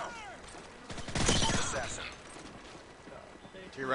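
Gunshots fire in a rapid burst.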